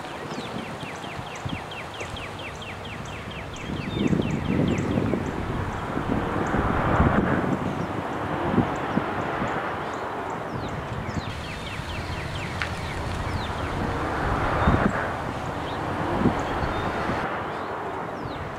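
A van drives past on a nearby road.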